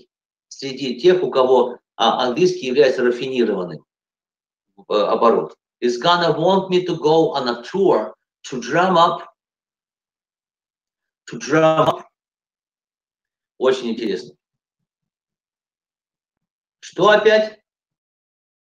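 A middle-aged man speaks calmly through an online call, in short bursts with pauses.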